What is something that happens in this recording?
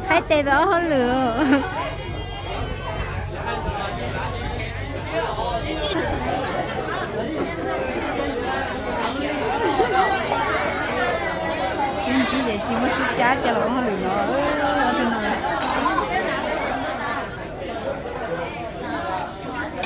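A crowd of young men and women chatter nearby, outdoors.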